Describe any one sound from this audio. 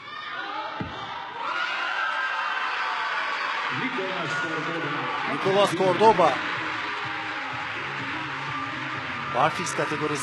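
A crowd in a large echoing hall cheers and applauds loudly.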